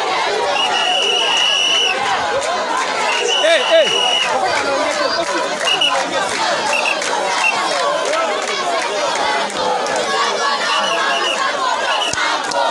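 A large crowd of young men chatters and shouts loudly outdoors.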